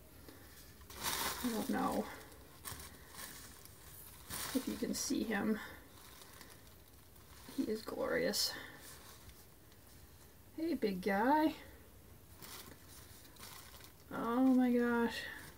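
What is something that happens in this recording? A woman talks calmly close by, in short phrases.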